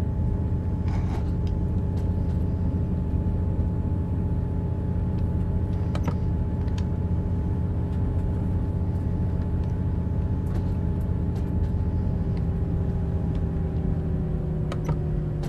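A diesel railcar's engine drones as the train runs along the track.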